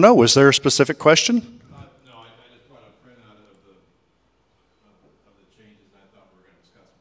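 A man speaks loudly through a microphone, then goes on more quietly.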